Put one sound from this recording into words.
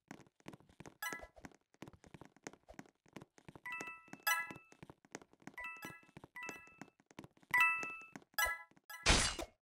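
Short bright chimes ring out in quick bursts.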